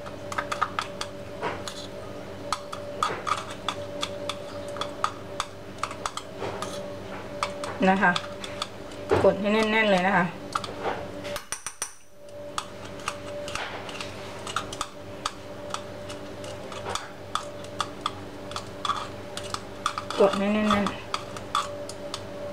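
A metal spoon scrapes and clinks against a cup as crumbs are scooped.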